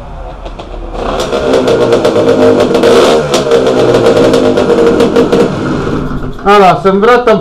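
A motorcycle engine starts and revs loudly in an enclosed room.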